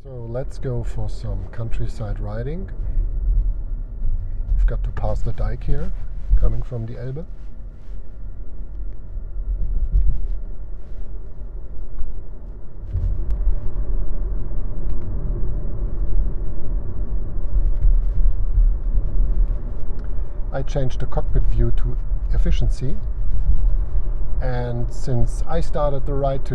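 A car engine hums and tyres roll on the road from inside the car.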